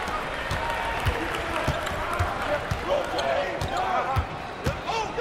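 A basketball bounces on a hard court in a steady dribble.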